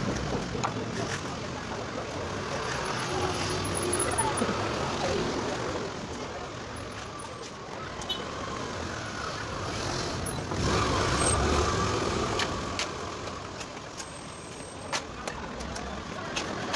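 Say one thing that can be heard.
Traffic rumbles steadily along a street nearby.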